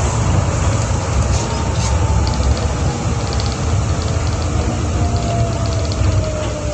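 A train's motor whines and slowly drops in pitch.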